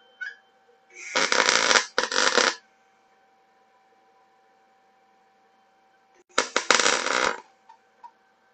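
An electric welding arc crackles and hisses in short bursts.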